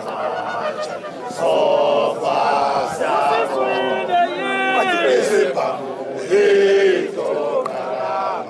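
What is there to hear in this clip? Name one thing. A group of men sing loudly together outdoors.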